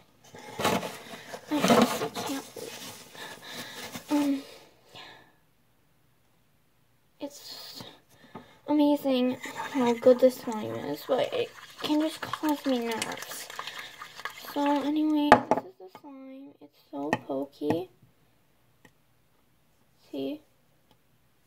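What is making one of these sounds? A young girl talks close by, calmly and with pauses.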